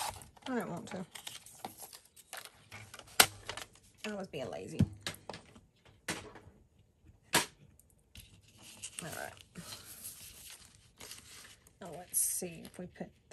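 Paper rustles and taps as it is handled and folded.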